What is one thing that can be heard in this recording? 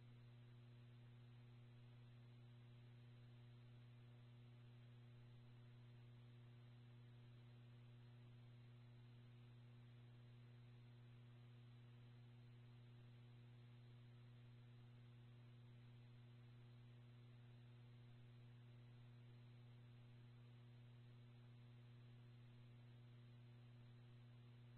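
A radio stream gives a steady soft hiss.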